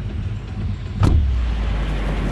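A sudden deep whoosh sounds as a figure leaps out into the air.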